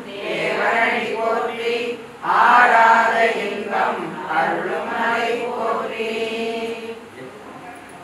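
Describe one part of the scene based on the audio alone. A man chants loudly in an echoing room.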